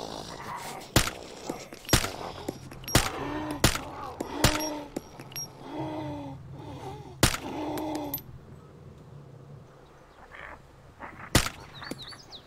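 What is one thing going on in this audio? Rifle shots crack out one at a time, sharp and loud.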